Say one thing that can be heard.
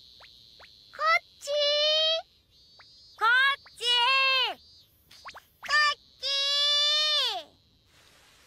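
A young girl's high voice calls out eagerly, again and again.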